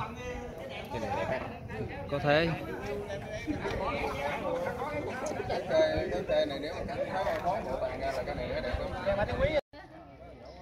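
A middle-aged man explains close by.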